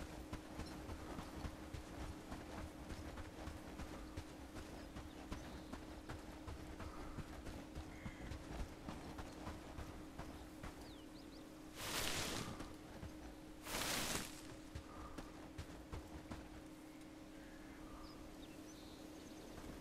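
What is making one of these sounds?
Footsteps swish through tall grass at a steady walking pace.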